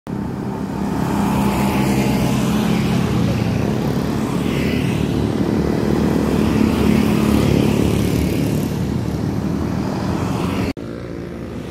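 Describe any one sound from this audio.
Motorcycle engines hum and buzz as motorcycles ride past.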